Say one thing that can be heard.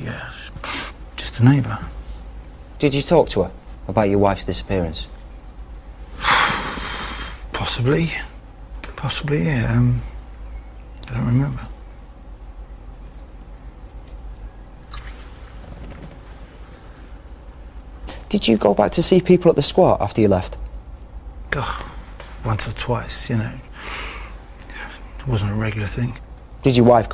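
A man speaks quietly and emotionally, close by.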